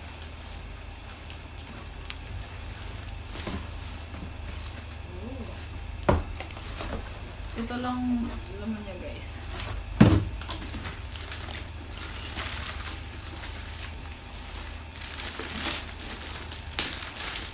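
Plastic wrapping crinkles and rustles close by.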